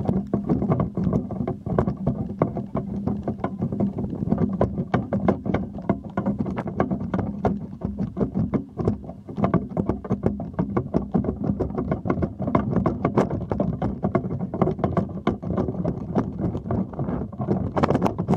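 Wind buffets and rumbles loudly across the microphone outdoors.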